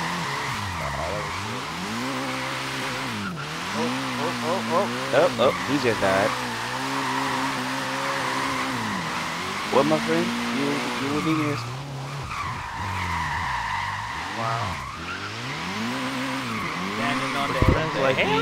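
A car engine revs up and down, rising and falling repeatedly.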